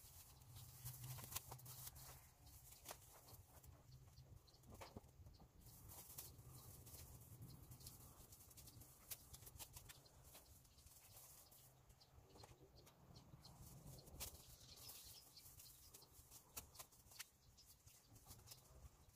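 Masking tape crackles as it is pulled and pressed along a window frame.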